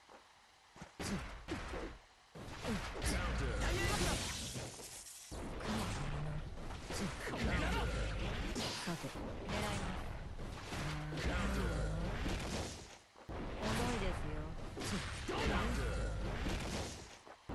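Sword slashes and blows land with sharp, punchy impacts.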